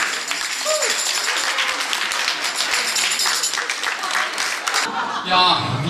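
Elderly women clap their hands rapidly.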